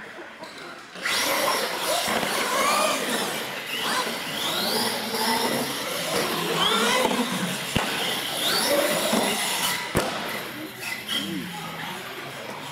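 Small electric motors of toy trucks whine as they race.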